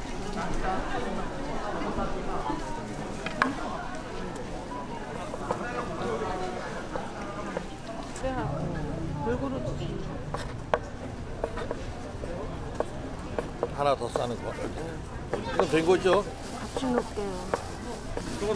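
A knife chops on a wooden board with sharp knocks.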